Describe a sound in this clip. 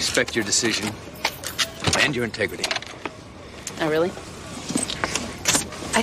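A car door opens.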